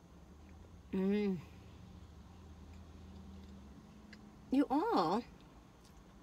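An older woman hums with pleasure while chewing.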